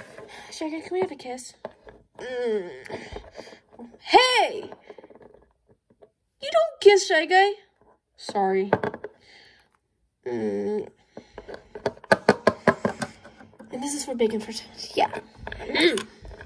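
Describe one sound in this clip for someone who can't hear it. Small plastic toys tap and clack on a wooden table.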